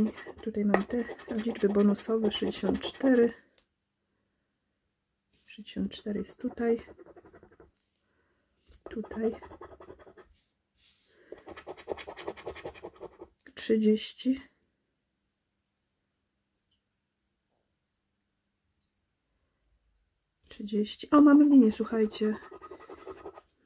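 A coin scrapes across a scratch card.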